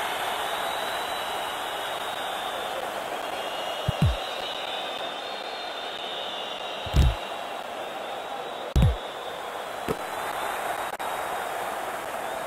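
A crowd roars steadily throughout.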